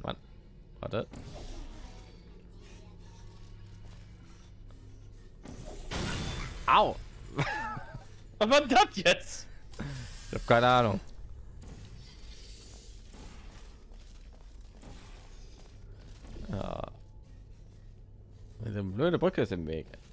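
A sci-fi gun fires with sharp electronic whooshes.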